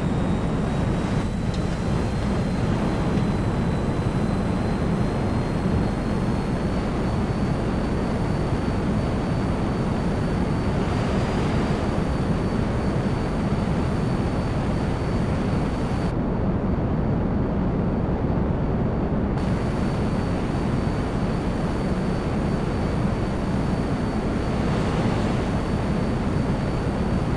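A jet fighter's engine roars.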